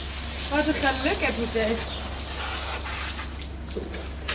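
Water sprays from a hose and splashes.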